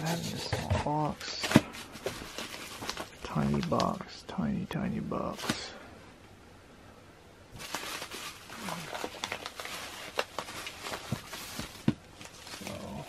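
Plastic bubble wrap crinkles and rustles as it is handled.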